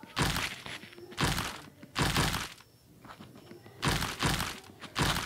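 A cartoon game's digging sound effect crunches in short bursts.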